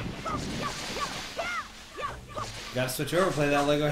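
A sword swishes and cuts through tall grass.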